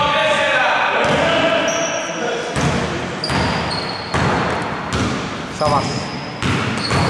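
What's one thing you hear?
A basketball bounces on the court with hollow thuds.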